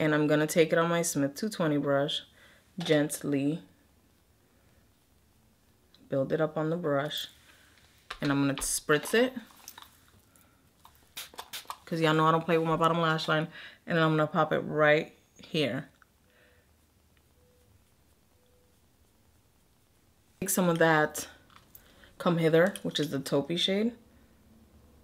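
A woman talks calmly and close to a microphone, in short bursts with pauses.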